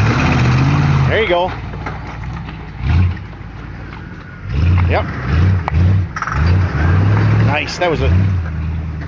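An off-road vehicle's engine revs in bursts as it climbs over rocks.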